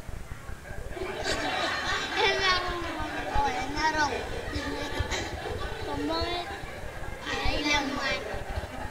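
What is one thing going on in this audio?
A child speaks into a microphone over loudspeakers in an echoing hall.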